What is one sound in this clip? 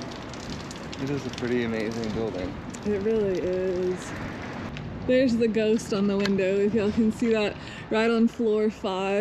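A young woman talks casually close to the microphone.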